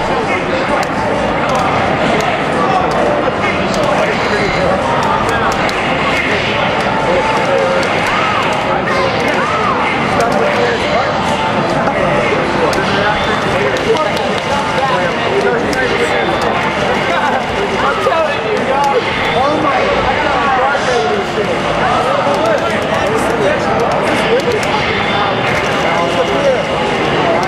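Video game punches, blasts and zaps play through a television speaker.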